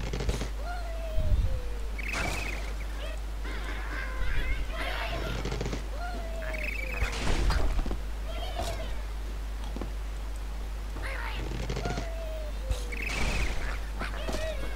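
Wooden blocks crash and tumble.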